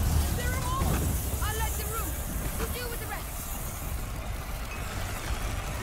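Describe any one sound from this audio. A fire crackles close by.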